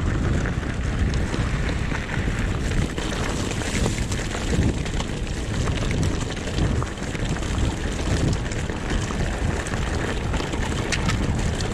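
Bicycle tyres crunch steadily over gravel.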